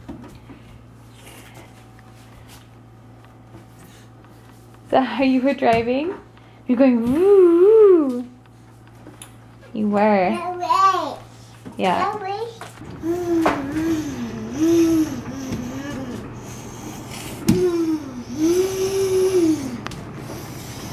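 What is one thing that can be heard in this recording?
A toddler pats on a washing machine door with small thumps.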